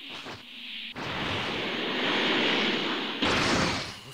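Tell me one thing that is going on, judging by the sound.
A powerful energy blast roars and whooshes.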